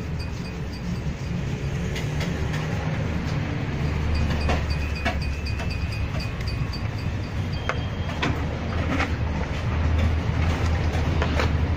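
Hands click and tap on shoe leather and a polish tin.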